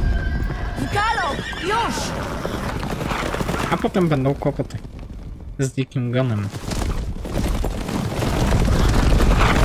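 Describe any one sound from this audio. Horses' hooves thud on a dirt path.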